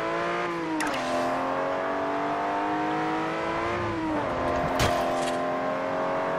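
A racing car engine roars at high revs and drops in pitch as it shifts gear.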